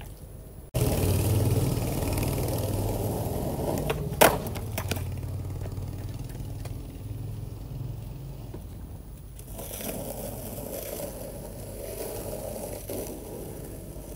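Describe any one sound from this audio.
Skateboard wheels roll and rumble on smooth pavement.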